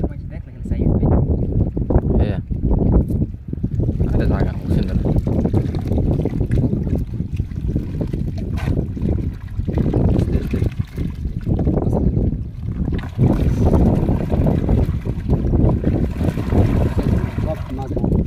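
Water splashes and sloshes as a net full of fish is lifted and shaken.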